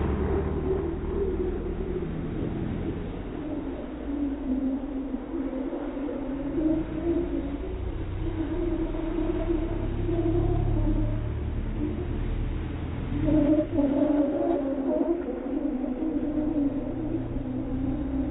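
A car engine revs hard and drones as the car drifts in circles.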